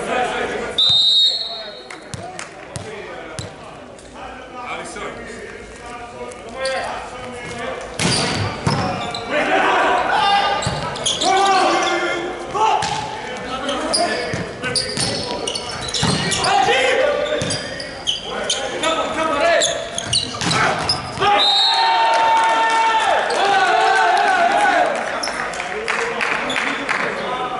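A volleyball is struck with sharp slaps, echoing in a large hall.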